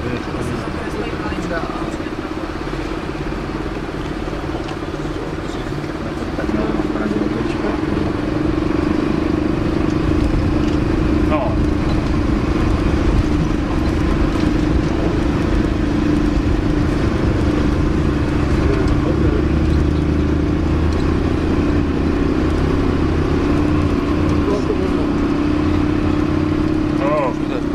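Tyres rumble over a rough gravel road.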